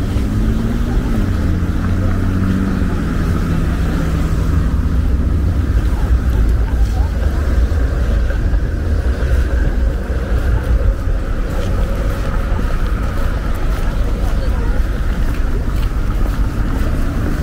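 Traffic rumbles steadily along a nearby street.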